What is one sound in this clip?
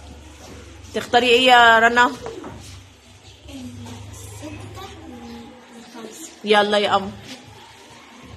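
A young girl speaks loudly close by.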